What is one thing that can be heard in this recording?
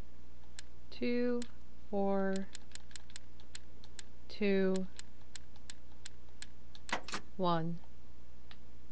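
A young woman speaks briefly through a microphone.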